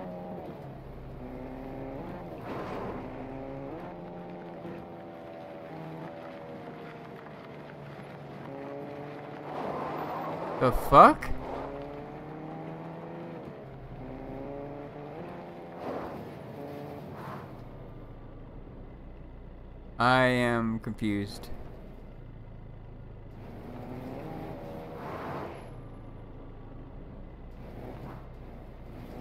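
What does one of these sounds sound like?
A car engine hums and revs as a car drives over rough ground.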